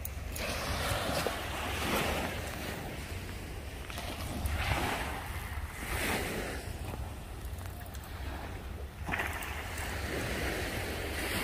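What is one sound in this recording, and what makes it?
Small waves wash gently onto a beach.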